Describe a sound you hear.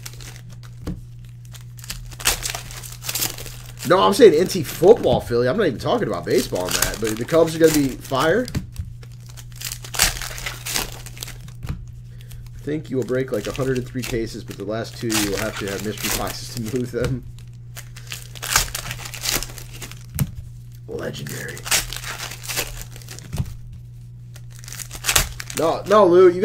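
Plastic card wrappers crinkle and rustle in hands.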